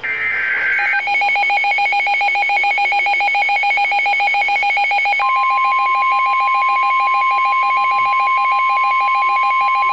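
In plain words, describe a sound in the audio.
A weather alert radio sounds a loud, steady pulsing electronic alarm.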